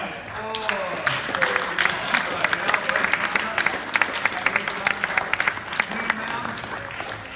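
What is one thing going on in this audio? A small group of people claps steadily.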